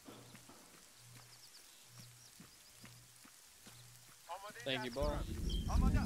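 Footsteps rustle through dry grass at a steady walking pace.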